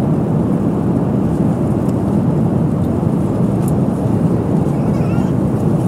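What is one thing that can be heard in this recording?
A steady airplane cabin engine roar fills the air.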